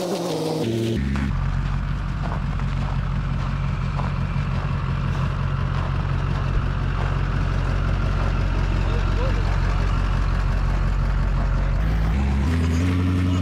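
A pickup truck engine rumbles steadily nearby.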